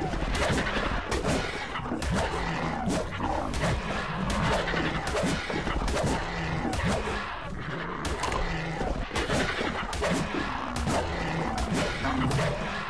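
Heavy blows strike again and again in quick succession.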